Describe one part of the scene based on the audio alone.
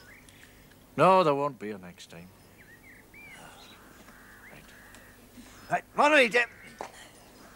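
An elderly man speaks.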